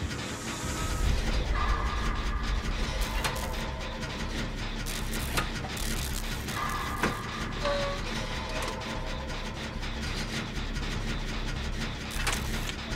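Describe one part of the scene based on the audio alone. Metal parts rattle and clank as a machine is worked on.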